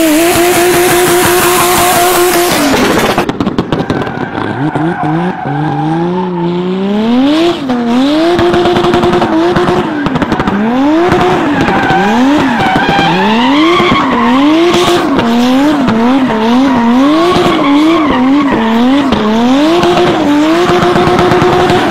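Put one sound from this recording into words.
A rally car engine revs hard, its pitch rising and falling again and again.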